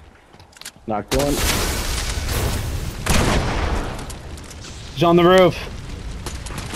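Flames crackle and roar after a blast.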